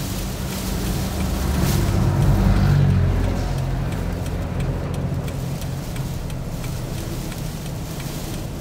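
A heavy truck rumbles loudly close by.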